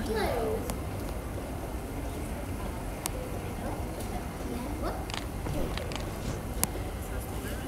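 Soft clicks and pops sound as objects are picked up and set down.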